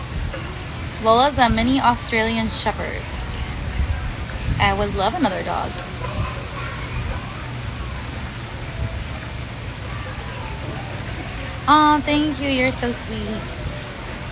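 A young woman talks close to a microphone in short bursts.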